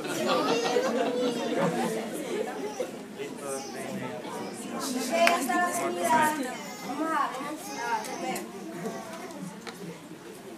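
Several young people talk and laugh nearby.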